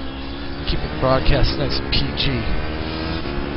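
A racing car exhaust pops and crackles sharply as the car slows.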